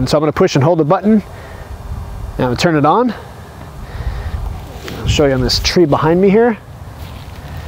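A man speaks close by in short, animated bursts.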